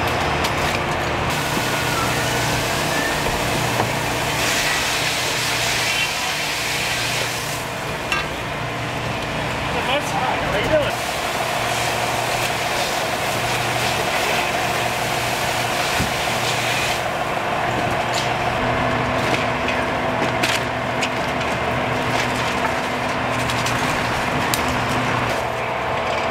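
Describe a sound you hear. A fire engine's pump rumbles steadily nearby.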